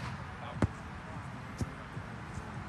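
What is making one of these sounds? A volleyball is hit with a sharp slap.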